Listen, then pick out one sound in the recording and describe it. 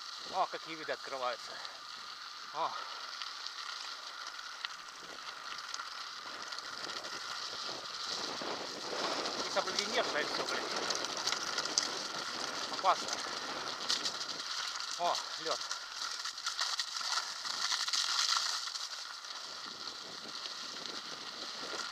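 Wind blows over the microphone outdoors.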